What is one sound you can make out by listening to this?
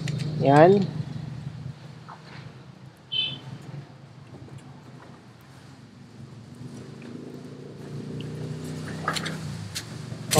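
Pruning shears snip through a plant stem.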